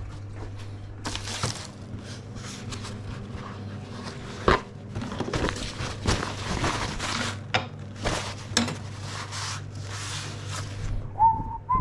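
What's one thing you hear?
A paper towel rustles and tears off a roll.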